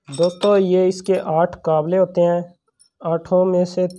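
Metal bolts clink together in a hand.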